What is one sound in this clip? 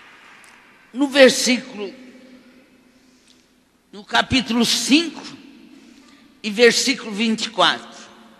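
An elderly woman speaks with feeling into a microphone over loudspeakers.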